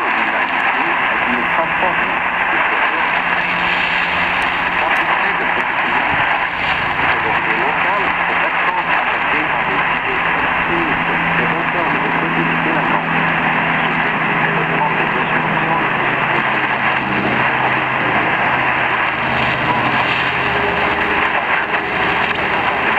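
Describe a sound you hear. A small radio loudspeaker plays a noisy, hissing shortwave signal with faint tones.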